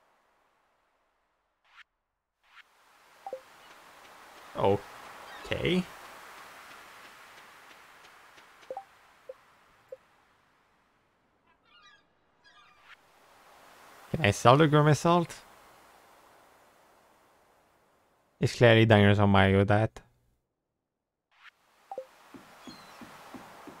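Soft clicks sound as a game menu opens and closes.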